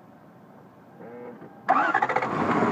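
A car engine starter cranks briefly.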